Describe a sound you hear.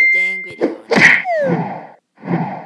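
A game bird smacks into a pipe and falls with a sliding swoosh.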